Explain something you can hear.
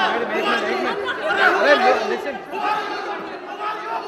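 An elderly man shouts as he pushes between the women.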